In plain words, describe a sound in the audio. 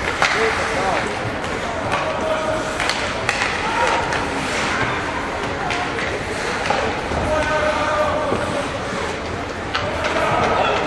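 Ice skates scrape and hiss across an ice rink.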